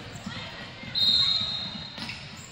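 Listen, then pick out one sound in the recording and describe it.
A referee's whistle blows shrilly.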